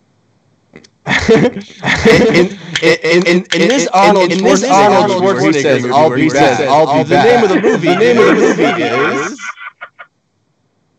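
Several men laugh loudly over an online call.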